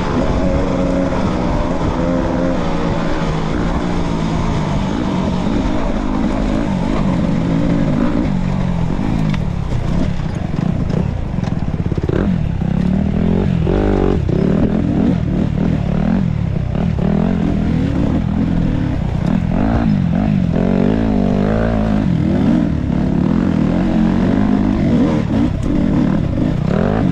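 Knobby tyres crunch over dirt and dry leaves.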